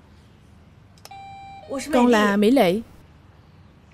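A doorbell rings with a loud electronic chime.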